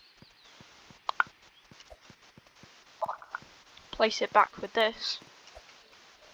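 Short game clicks sound as blocks are placed.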